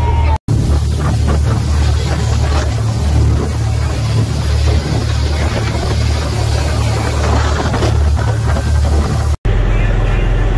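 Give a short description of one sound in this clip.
Wind buffets loudly over the water.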